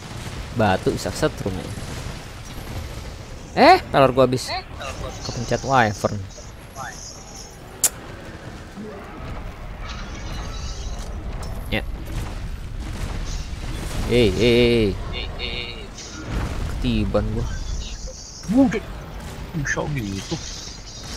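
Weapon shots fire with sharp bangs.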